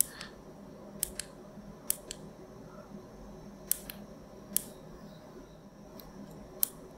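Small buttons click sharply now and then.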